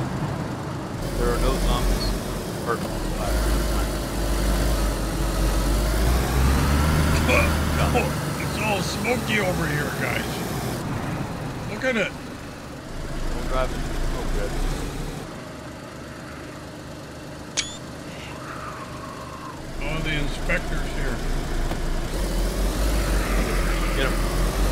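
A vehicle engine rumbles steadily as it drives.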